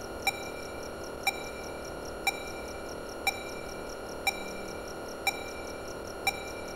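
A computer beeps sharply once every second.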